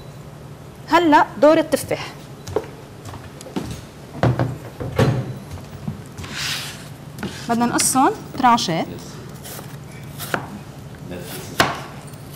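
A woman chef talks calmly close to a microphone.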